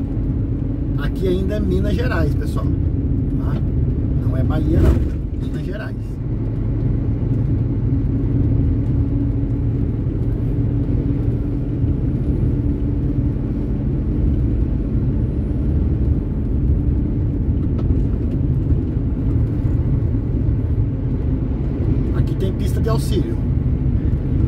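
Passing trucks rush by close in the other direction.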